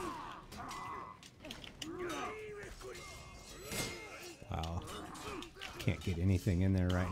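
Warriors grunt and shout as they fight.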